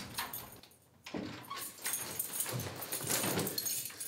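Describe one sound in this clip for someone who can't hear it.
A man's footsteps thud across a wooden floor.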